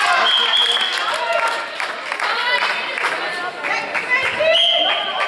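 Young girls shout to each other across an echoing hall.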